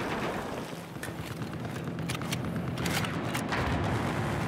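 A rifle fires in short bursts.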